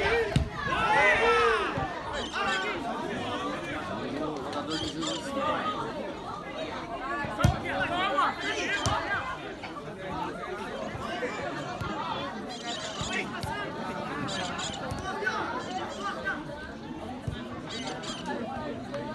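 Several young men shout and call out across an open field.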